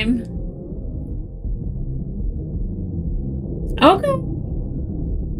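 Muffled, low music plays steadily.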